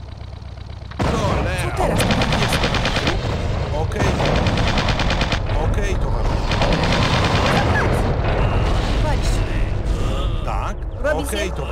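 Guns fire in rapid bursts during a battle.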